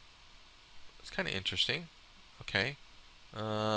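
A man speaks casually into a microphone, close up.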